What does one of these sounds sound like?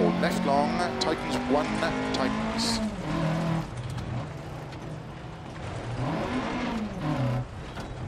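A rally car engine revs hard, its pitch rising and falling with gear changes.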